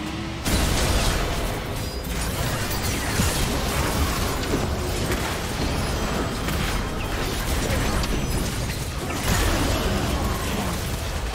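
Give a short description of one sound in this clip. Spell effects crackle and burst in a fast-paced battle.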